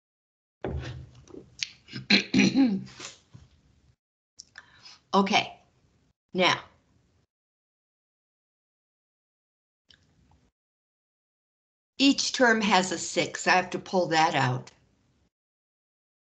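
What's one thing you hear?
A woman explains calmly through a microphone, in short bursts with pauses.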